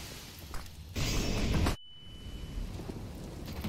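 A flashbang grenade goes off with a loud bang and a high ringing.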